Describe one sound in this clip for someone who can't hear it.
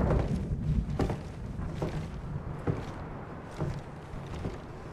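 Heavy boots thud slowly on wooden floorboards.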